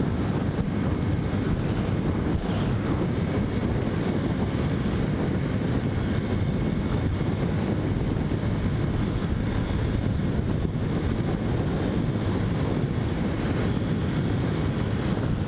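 Wind roars steadily past a fast-moving motorcycle.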